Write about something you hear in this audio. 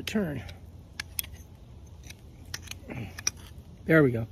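A plastic hose fitting clicks as it is twisted.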